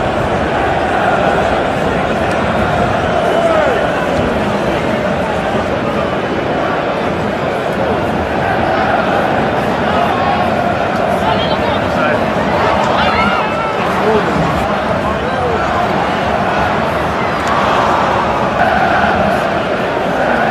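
A large stadium crowd roars and chants throughout.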